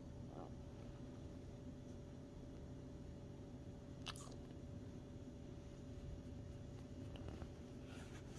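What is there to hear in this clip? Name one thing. A cat purrs softly close by.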